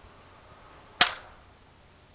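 A pistol fires a single loud shot outdoors.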